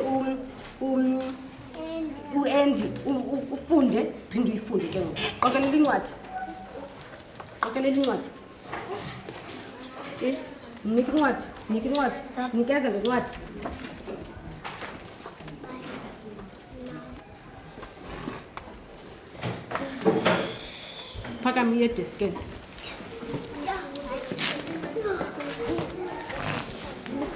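A woman speaks calmly and clearly to children nearby.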